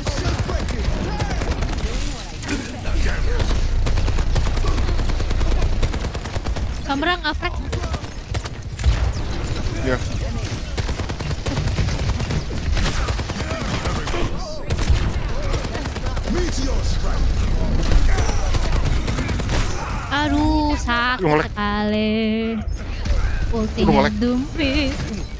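Gunfire and blasts from a video game crackle steadily.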